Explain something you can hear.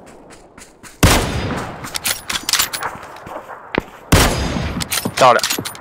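A sniper rifle fires single loud shots that echo and fade.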